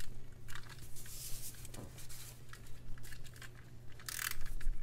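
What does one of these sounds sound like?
A tape roller rasps as it is pulled along.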